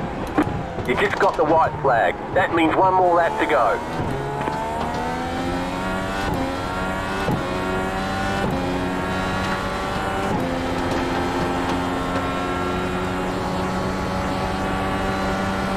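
A racing car engine whines, climbing in pitch and dropping sharply at each gear change.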